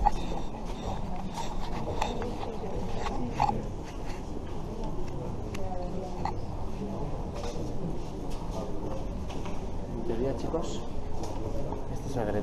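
People murmur in a large echoing hall.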